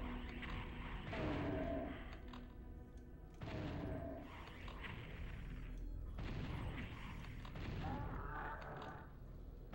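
Video game gunfire and explosions sound in bursts.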